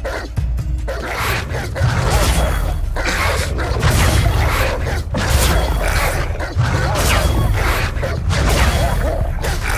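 Blows and spell blasts thud and crash in a fight.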